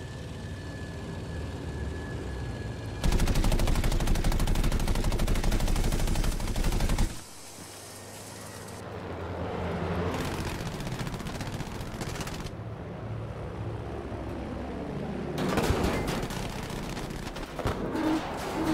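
A plane's engine drones steadily.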